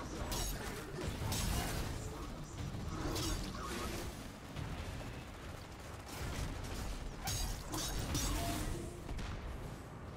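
A sword swishes and strikes.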